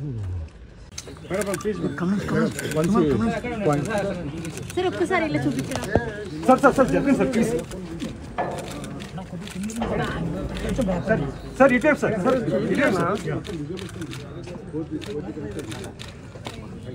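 A crowd of men and women chatter and call out loudly close by.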